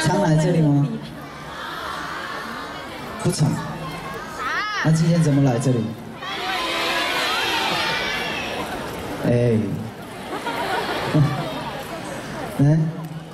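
A crowd screams and cheers.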